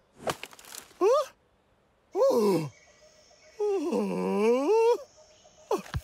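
A cartoon rhino creature makes rising and falling groaning cries.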